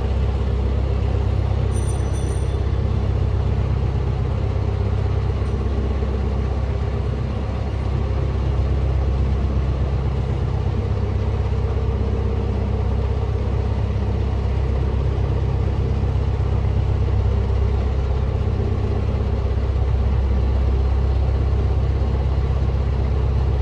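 A boat's diesel engine chugs steadily close by.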